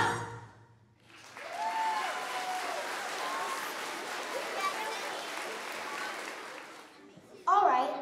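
An audience cheers and claps.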